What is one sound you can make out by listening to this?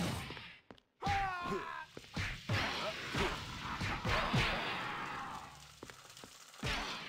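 Punches and blows land in a scuffle.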